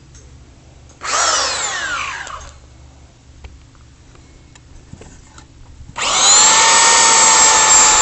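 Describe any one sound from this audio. A belt sander whirs loudly, spins down, then starts up again.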